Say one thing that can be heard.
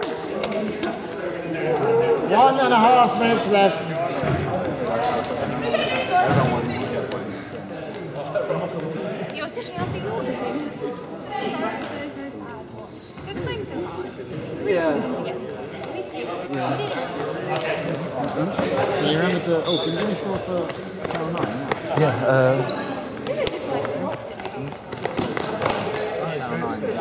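Young people talk and laugh nearby in a large echoing hall.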